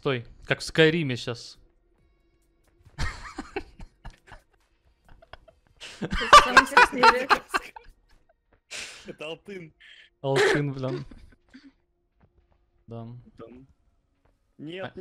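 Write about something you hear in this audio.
A young man talks with animation into a microphone, in bursts with short pauses.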